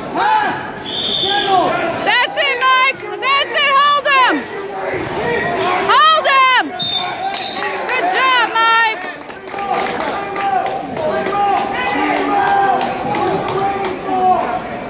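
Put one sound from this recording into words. Spectators shout and cheer loudly in an echoing gym.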